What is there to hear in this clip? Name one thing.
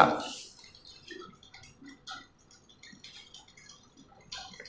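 Chalk taps and scrapes softly on a board.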